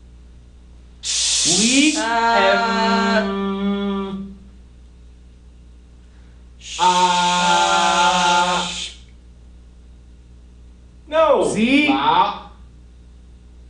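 A young woman sings out in long, loud, wavering notes close by.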